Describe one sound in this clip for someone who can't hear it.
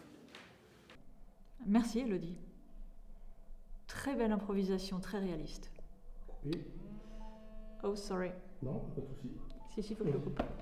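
A middle-aged woman speaks with animation, close to a microphone.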